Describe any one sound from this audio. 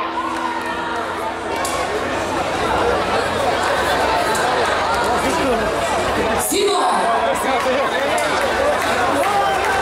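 A man sings into a microphone over the band.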